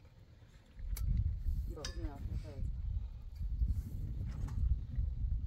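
Metal poles knock together.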